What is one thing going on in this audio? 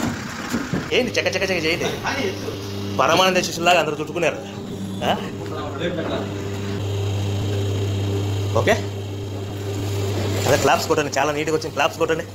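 A man talks nearby.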